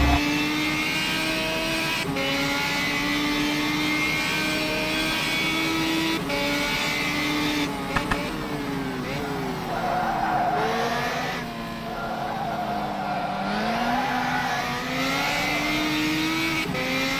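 A racing car engine roars, rising in pitch and dropping sharply with each gear change.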